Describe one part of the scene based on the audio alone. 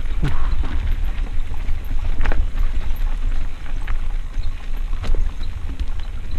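Wind rumbles over the microphone of a descending rider.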